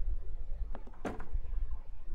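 A door handle turns with a click.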